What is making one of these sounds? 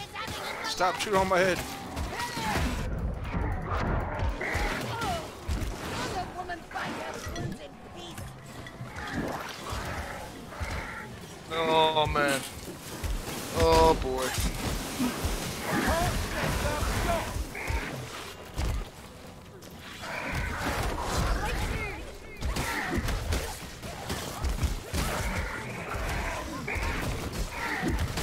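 Blades strike and slash flesh.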